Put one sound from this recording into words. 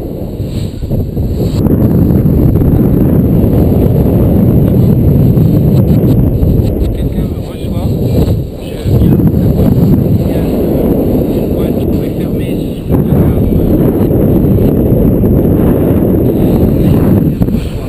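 Strong wind rushes and buffets loudly past in open air.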